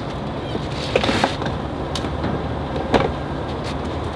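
A fuel nozzle clicks and clunks against a car.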